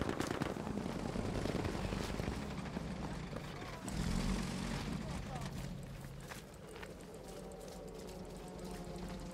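Quick footsteps thud on a dirt path.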